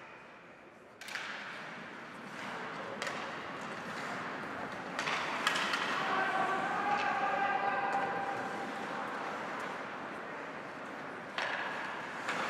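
Hockey sticks clack sharply against the puck.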